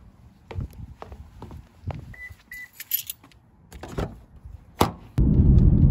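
Footsteps tap on concrete steps.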